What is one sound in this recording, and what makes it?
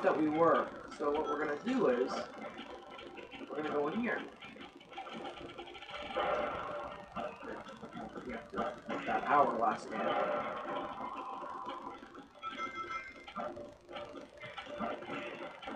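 Video game sound effects play through a small speaker.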